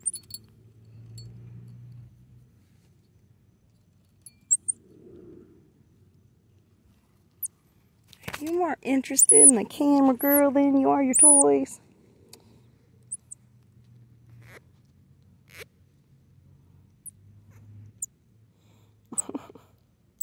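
A small monkey gives short, high chirps.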